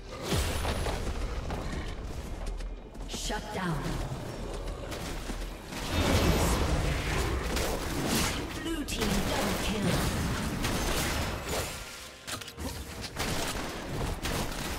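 Game spell effects whoosh and hits clash in a fast battle.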